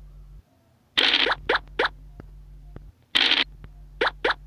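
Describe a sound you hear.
A game's dice rattle as they roll.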